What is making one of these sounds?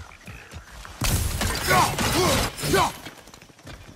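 A wooden crate smashes and splinters.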